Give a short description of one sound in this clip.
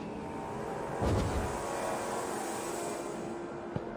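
A torch flares up with a soft whoosh.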